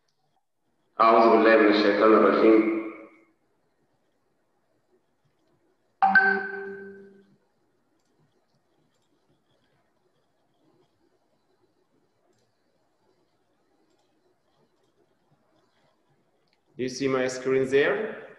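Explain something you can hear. A man speaks calmly through a headset microphone, heard as in an online call.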